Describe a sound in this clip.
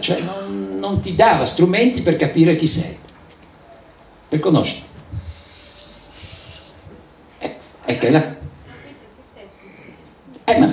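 A man speaks into a microphone with pauses between his words.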